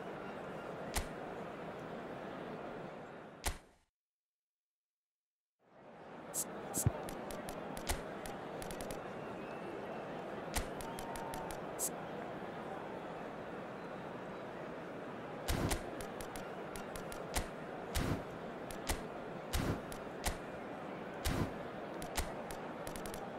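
Short clicks sound as menu selections change.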